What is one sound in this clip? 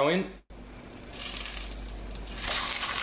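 Hot oil sizzles loudly as food is lowered into it.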